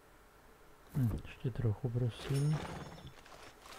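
A horse snorts and huffs close by.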